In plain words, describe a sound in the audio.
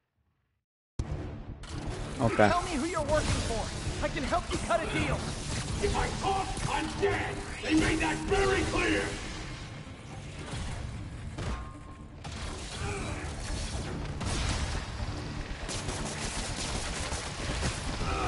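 Game sound effects of blasts and crashes play loudly.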